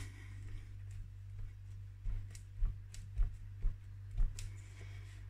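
Hands press a folded card flat on a table with soft thumps.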